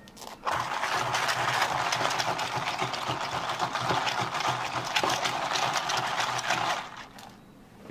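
A spoon scrapes and swirls inside a plastic cup.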